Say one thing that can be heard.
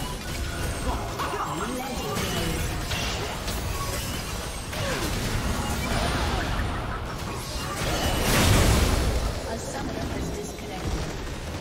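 Game spells and weapon blasts clash rapidly in a busy battle.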